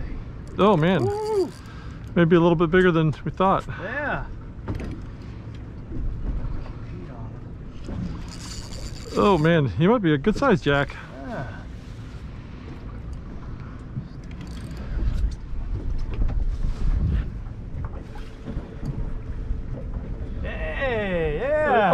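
A man talks excitedly close by.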